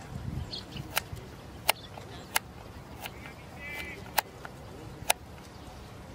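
A cricket bat sharply strikes a leather ball outdoors.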